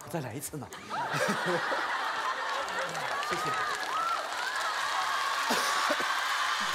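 A studio audience laughs.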